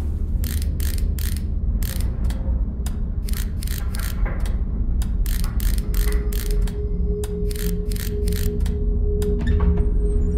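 A safe's combination dial clicks as it turns.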